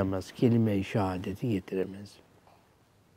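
An elderly man chants a reading aloud into a close microphone, his voice rising and falling.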